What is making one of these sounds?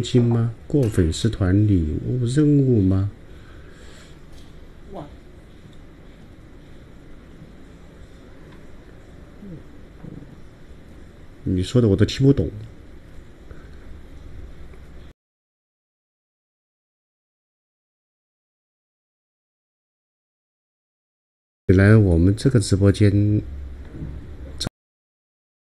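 A middle-aged man talks with animation, close to a microphone.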